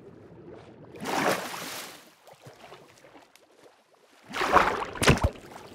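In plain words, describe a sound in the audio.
Water churns and splashes in bursts.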